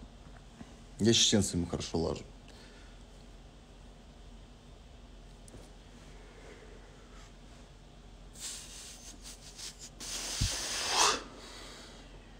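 A young man speaks briefly and quietly, close to the microphone.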